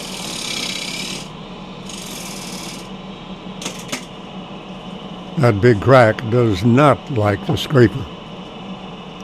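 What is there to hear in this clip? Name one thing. A wood lathe motor hums as it spins.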